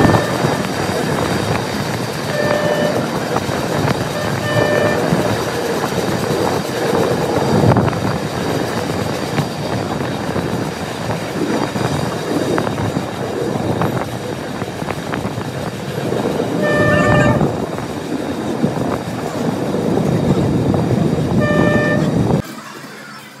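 A train rattles and rumbles steadily along the tracks.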